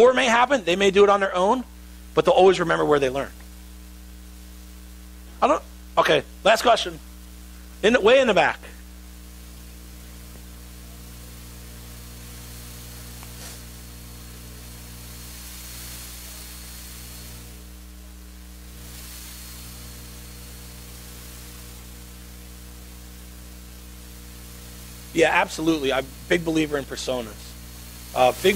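A man speaks to an audience through a microphone, with long pauses.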